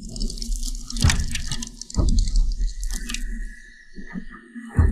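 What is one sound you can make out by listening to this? Ice axes strike hard ice with sharp, crunching thuds.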